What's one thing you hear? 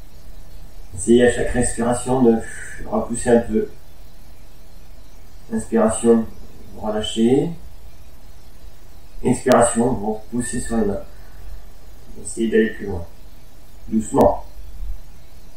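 A man speaks calmly and slowly, close by, with pauses.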